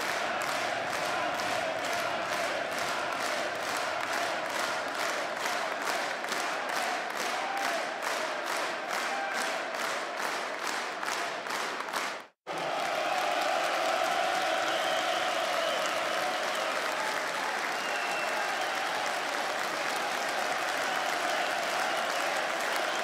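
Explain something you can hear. A large crowd murmurs and cheers in a big arena.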